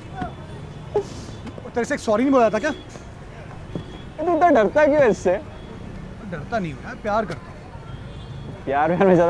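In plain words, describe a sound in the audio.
Young men talk and laugh together.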